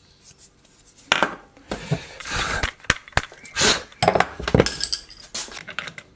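Metal tools clink and knock against a hard surface.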